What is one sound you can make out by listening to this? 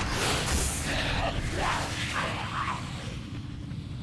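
Magic spells whoosh and crackle in a fight.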